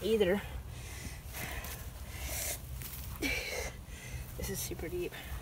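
Wet mud squelches as a child digs through it by hand.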